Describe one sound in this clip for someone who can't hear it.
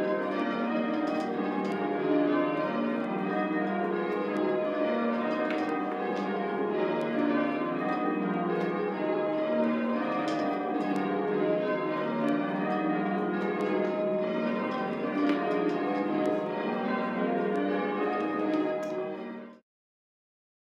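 Church bells ring a continuous peal in quick succession.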